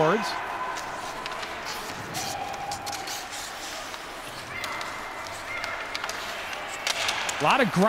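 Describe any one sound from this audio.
Players bump into the boards.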